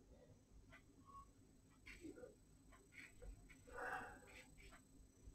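A flat brush dabs and scrapes softly across paper.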